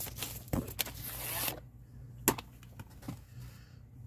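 A ruler clacks down on paper.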